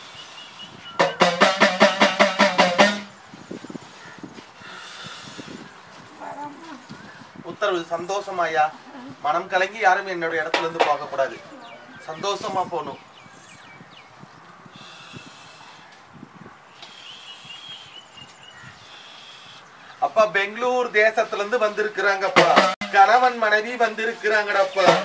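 A small hand drum rattles in a fast rhythm.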